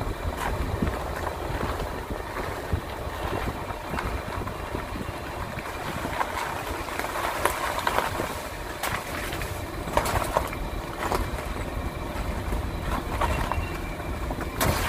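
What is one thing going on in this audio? A vehicle engine rumbles steadily close by.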